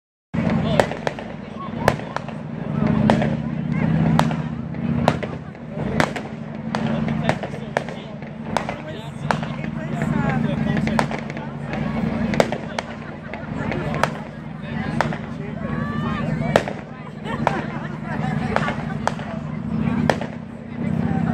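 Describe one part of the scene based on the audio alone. Fireworks crackle and fizz after bursting.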